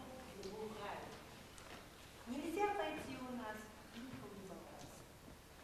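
A woman sings a few notes in an echoing hall.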